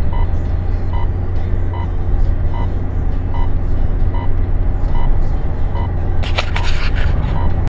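A car engine hums steadily as tyres roll along a highway.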